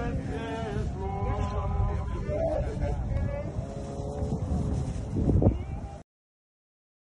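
A group of women sings together outdoors, heard from nearby.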